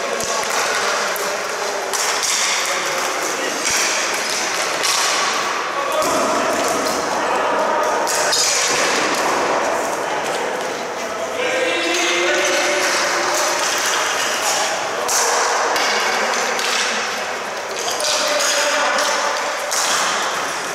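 Players shout and call out across a large echoing arena.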